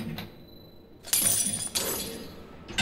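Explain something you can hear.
Bolt cutters snap through a metal chain with a sharp clank.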